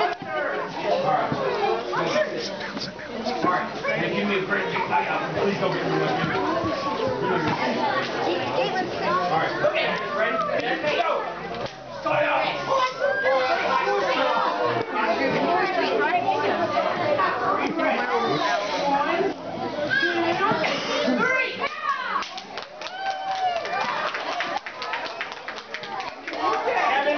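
A crowd of adults and children chatters all around in a large echoing hall.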